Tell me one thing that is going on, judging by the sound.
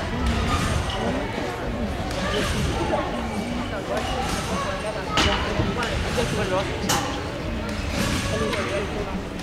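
Men and women chatter in the background of an echoing hall.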